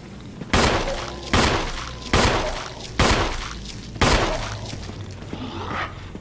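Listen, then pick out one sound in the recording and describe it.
Footsteps crunch slowly on gravel.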